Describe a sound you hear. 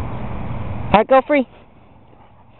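A dog yips with a few short, high cries.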